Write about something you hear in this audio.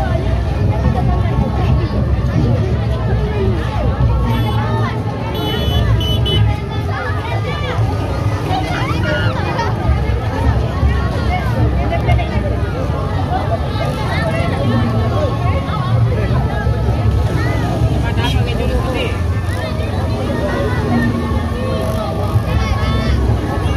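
A crowd chatters outdoors all around.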